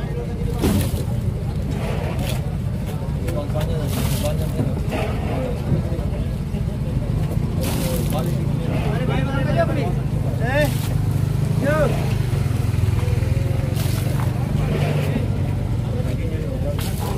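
A knife slices through raw fish.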